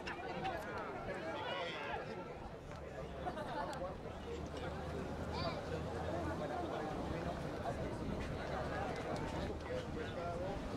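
Rugby players shout and call to each other across an open field.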